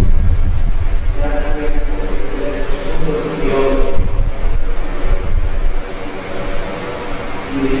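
A man speaks slowly and solemnly through a microphone in a large echoing hall.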